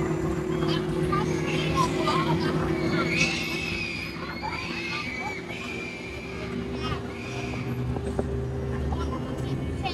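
A distant crowd murmurs and cries out.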